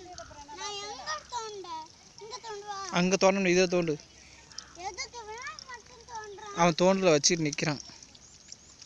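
A young boy talks loudly and with animation close by.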